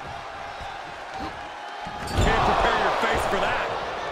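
A body slams onto a wrestling mat with a heavy thud.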